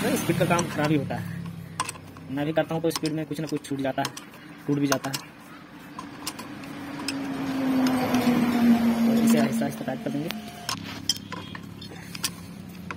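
A ratchet wrench clicks as it turns a bolt.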